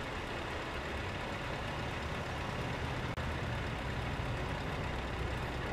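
A heavy truck engine idles with a deep, steady rumble.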